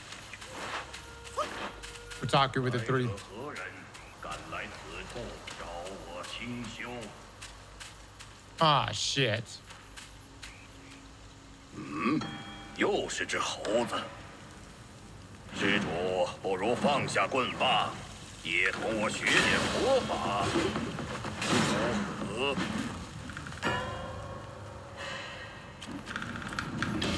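A young man talks with animation through a headset microphone.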